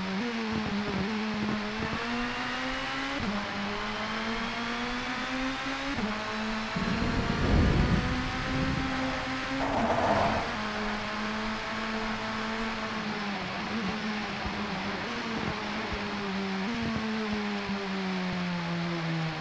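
A racing car engine revs high and shifts through the gears.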